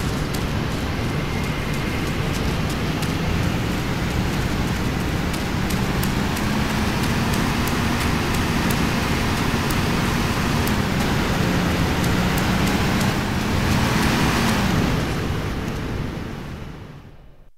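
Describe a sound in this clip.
Footsteps run on grass and gravel.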